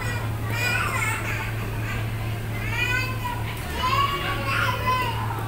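A toddler babbles in a high voice nearby.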